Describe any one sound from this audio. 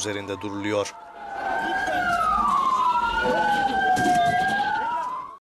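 An ambulance siren wails nearby, rising and falling.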